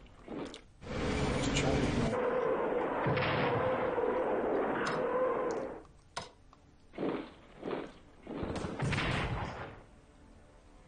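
Gunfire and explosions rumble in a battle.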